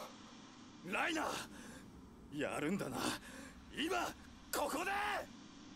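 A young man calls out urgently.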